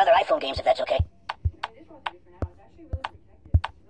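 A soft toy thuds against a wall again and again.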